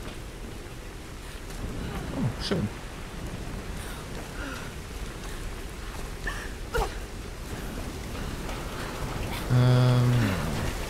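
Footsteps crunch through grass and over rock.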